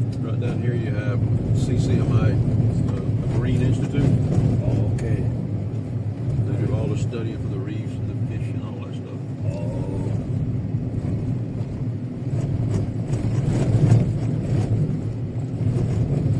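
Wind rushes past an open car window.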